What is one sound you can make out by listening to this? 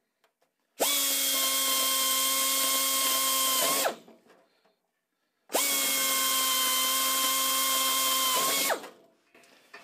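An air drill whines loudly in two long bursts.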